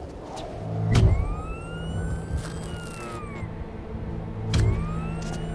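A suction glove thumps against glass.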